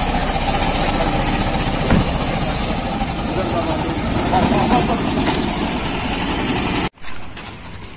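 A vehicle engine idles close by.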